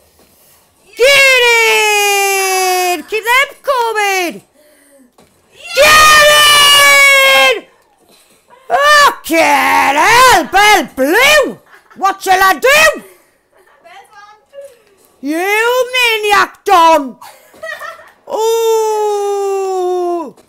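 A young woman shouts and screams excitedly into a microphone.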